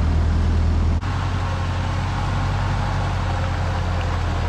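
A tractor engine idles in the distance.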